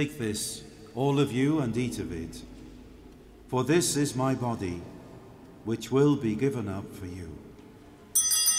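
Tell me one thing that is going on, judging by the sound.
A man chants in a large echoing hall.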